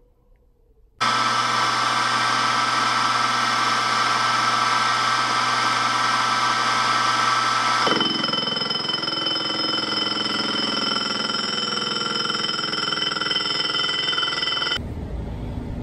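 A milling machine whirs steadily as its cutter spins.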